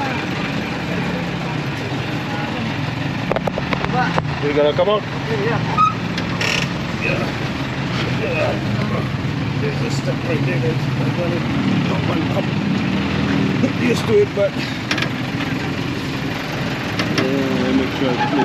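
A motor engine idles with a steady low rumble.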